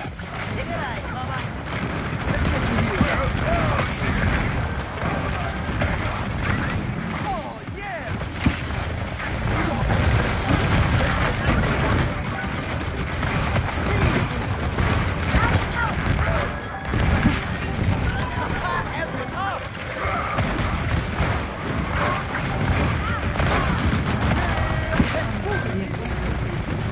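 A video game gun fires in rapid bursts.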